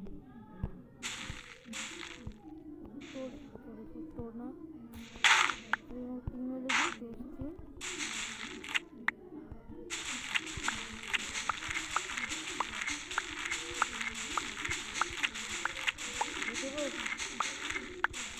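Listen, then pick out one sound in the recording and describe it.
A video game plays short sparkling rustles again and again.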